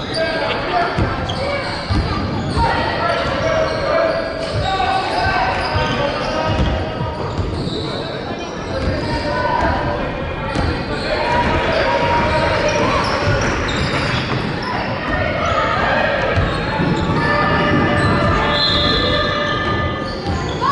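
A crowd of people chatters and calls out in a large echoing hall.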